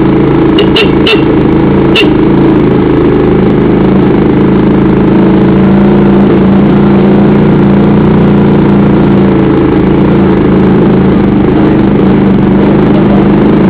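A motorbike engine hums steadily up close as it rides along.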